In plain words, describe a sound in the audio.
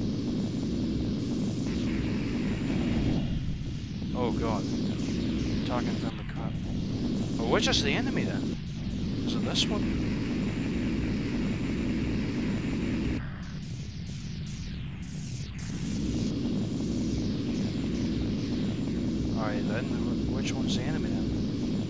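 Laser cannons fire in short, zapping bursts.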